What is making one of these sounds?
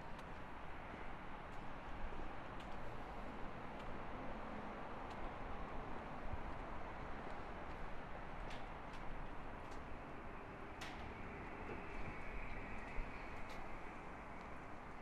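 Footsteps tap on a pavement outdoors.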